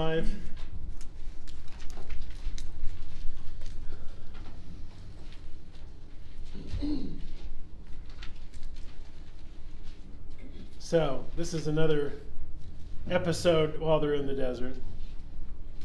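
A man speaks calmly nearby, in short phrases with pauses.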